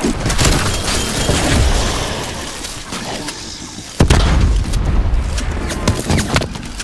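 Gunfire and explosions boom in a video game.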